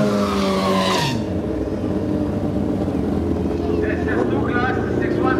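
Motorcycle engines rev loudly and roar.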